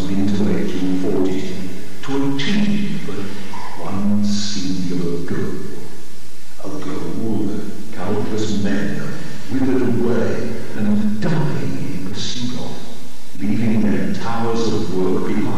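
A man speaks calmly and steadily through a microphone.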